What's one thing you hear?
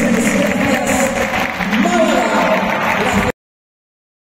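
A crowd cheers and chants in a large echoing arena.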